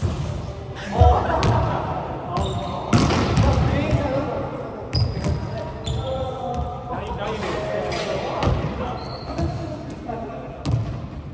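A volleyball is struck by hands in a large echoing hall.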